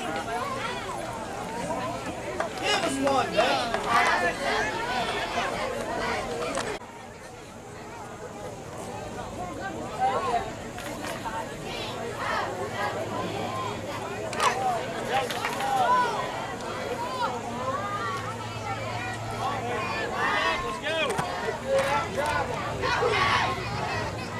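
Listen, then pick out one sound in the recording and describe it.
Young players shout across an open field outdoors.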